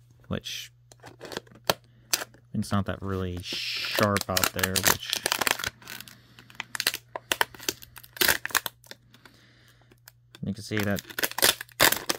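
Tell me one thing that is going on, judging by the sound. A knife blade saws and crackles through thin plastic.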